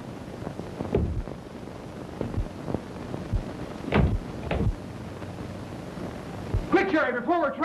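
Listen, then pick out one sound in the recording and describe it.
Bodies thud heavily in a scuffle.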